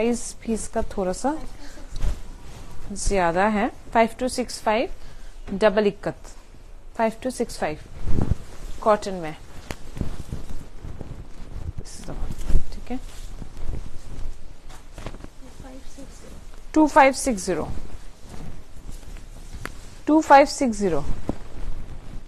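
A young woman talks close by.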